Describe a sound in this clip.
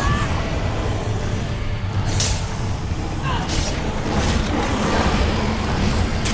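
Deep rumbling battle noise fills the air.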